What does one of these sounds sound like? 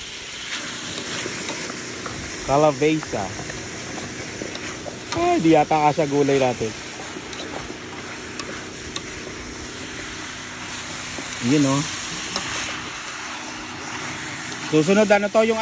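A metal spatula scrapes and stirs food in a pan.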